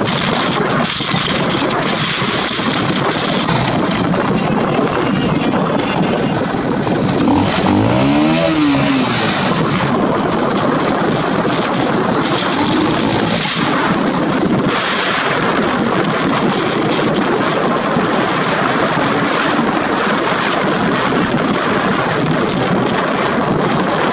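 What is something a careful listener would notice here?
Tyres roll over a gravel road.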